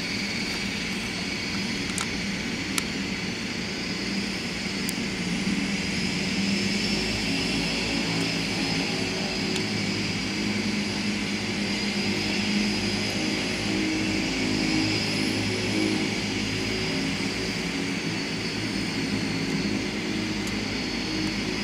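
Turboprop engines whine and drone loudly nearby.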